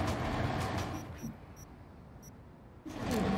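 Soft electronic blips chime briefly.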